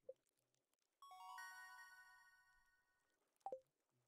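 A bright chime rings out in a short rising fanfare.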